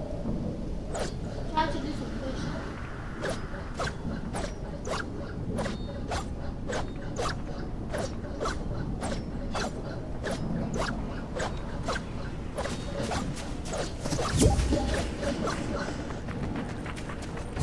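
A pickaxe strikes something again and again in quick, even blows.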